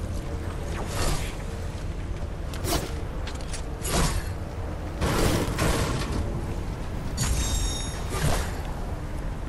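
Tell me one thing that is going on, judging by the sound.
A pickaxe strikes metal with sharp clangs.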